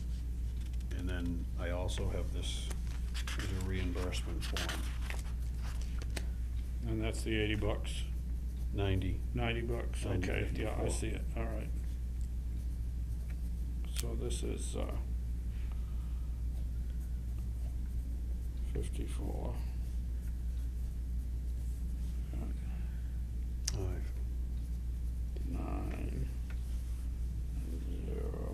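An elderly man talks quietly at close range.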